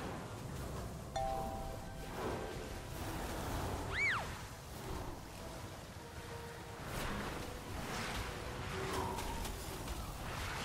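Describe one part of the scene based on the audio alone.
Magic spell effects chime and whoosh during a fight.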